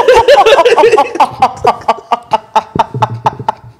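A young woman laughs in short bursts close to a microphone.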